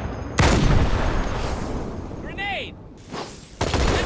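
An energy blast bursts with a crackling whoosh.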